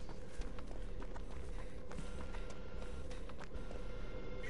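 Quick footsteps rustle through tall grass.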